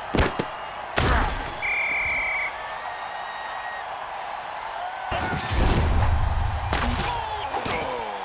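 Armored players crash together in a heavy tackle.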